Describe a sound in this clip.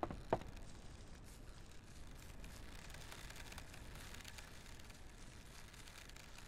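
Footsteps rustle through long grass and leafy undergrowth.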